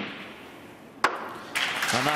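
Snooker balls clack together.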